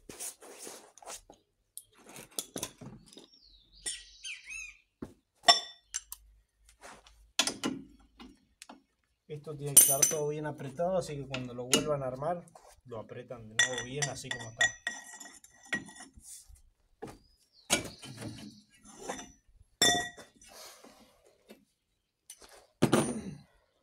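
Metal tools clink and clatter.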